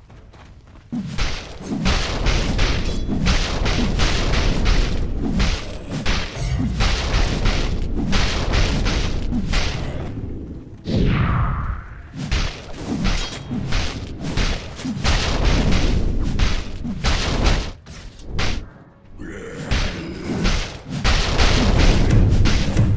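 Game characters clash in battle with spell blasts and hits.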